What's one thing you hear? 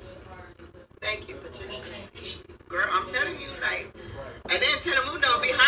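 A woman talks through a television loudspeaker.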